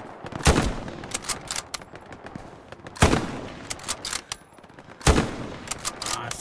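A rifle fires loud shots that echo away.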